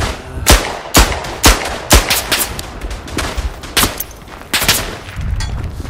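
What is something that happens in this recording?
Pistol shots ring out in quick succession, echoing.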